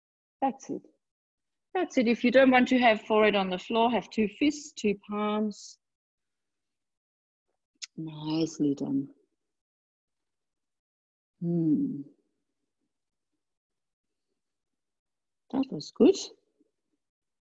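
A woman speaks calmly into a microphone, giving slow instructions with long pauses.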